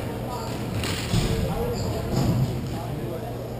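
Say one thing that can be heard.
A goalie's pads thump as the goalie drops into a crouch.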